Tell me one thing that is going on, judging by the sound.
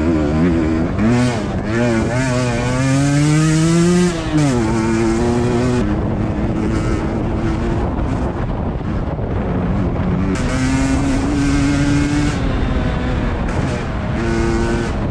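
A two-stroke enduro motorcycle revs up and down close by.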